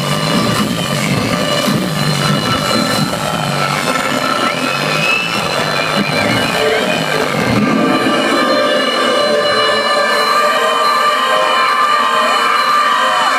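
Loud live music booms through speakers in a large echoing hall.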